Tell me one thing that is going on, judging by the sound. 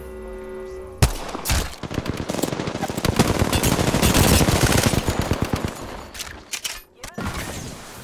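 Rapid gunfire rattles in close bursts.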